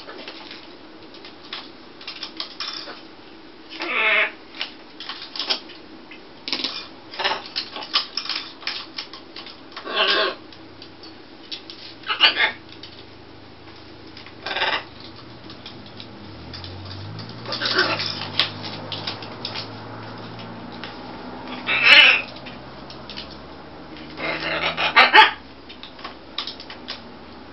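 Parrots squawk and chatter in bursts close by.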